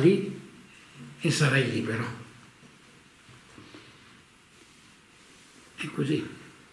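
A middle-aged man speaks calmly and cheerfully close to the microphone, with pauses.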